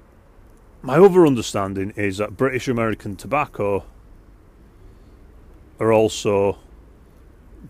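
A man speaks calmly and close up into a microphone, in short bursts.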